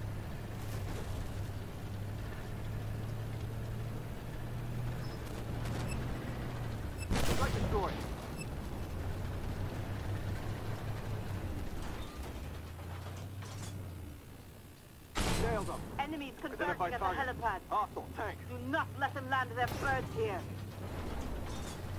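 A tank engine rumbles steadily.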